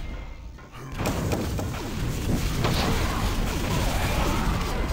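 Rockets explode with heavy booms.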